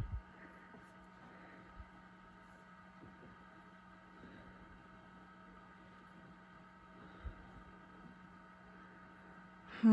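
An egg-candling lamp hums steadily.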